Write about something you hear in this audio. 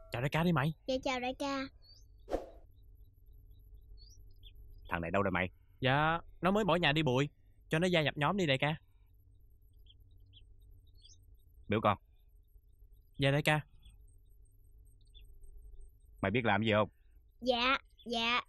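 A young boy speaks with animation.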